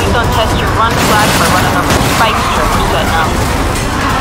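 A car crashes into a metal railing with a loud bang and scraping.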